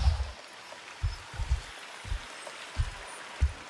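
Footsteps thud softly on a leafy forest floor.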